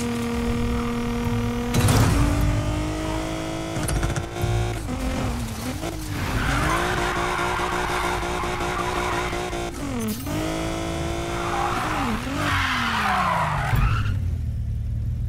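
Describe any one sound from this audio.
A powerful car engine roars and revs up and down through gear changes.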